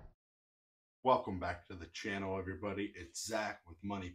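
A man with a deep voice talks with animation, close by.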